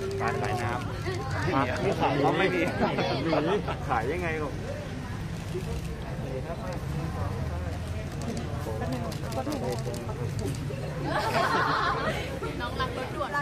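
Young women laugh together.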